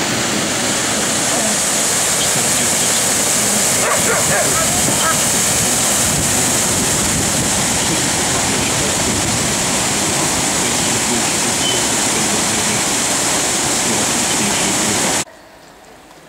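Water rushes loudly over a weir.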